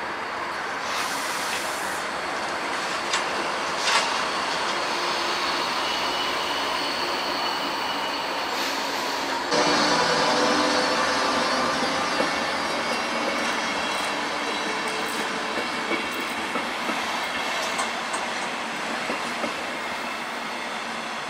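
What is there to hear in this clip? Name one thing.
A train rumbles past along the tracks.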